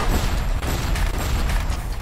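A weapon fires with a loud crackling blast.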